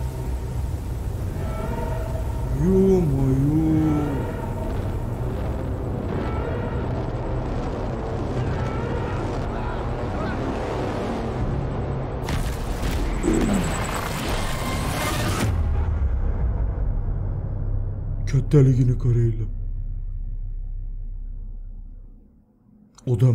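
Wind howls in a storm.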